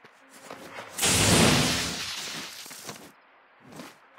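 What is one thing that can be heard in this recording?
An electric blast crackles and booms.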